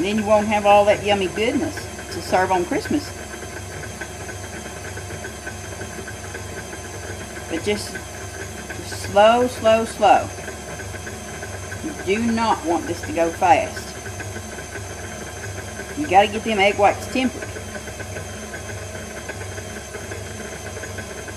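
A stand mixer whirs steadily as its whisk beats in a metal bowl.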